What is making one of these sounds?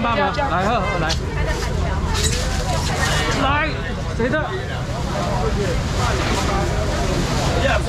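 A crowd of men and women chatter and call out all around.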